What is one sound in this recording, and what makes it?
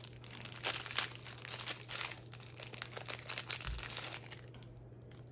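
Plastic packaging rustles and crinkles close by.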